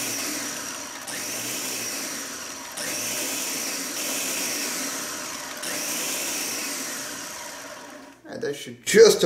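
A blender whirs steadily, then stops.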